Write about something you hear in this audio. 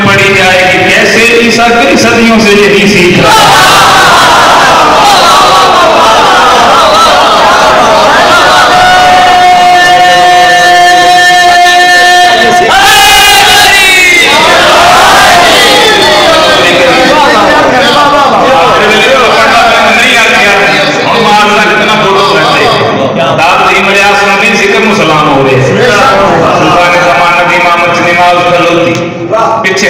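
A man recites loudly and passionately into a microphone over loudspeakers, in an echoing hall.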